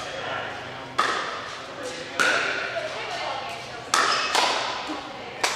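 Paddles strike a ball with sharp pops that echo in a large hall.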